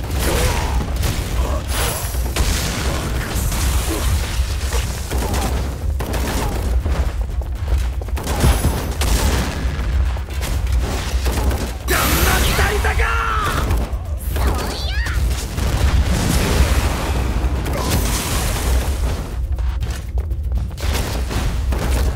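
Blows strike and thud in quick bursts.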